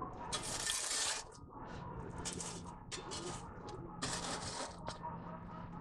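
A metal shovel scrapes and crunches through burning charcoal.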